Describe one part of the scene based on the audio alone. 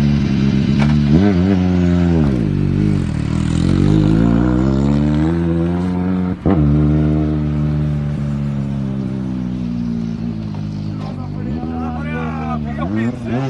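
A car engine revs hard and roars as the car speeds away.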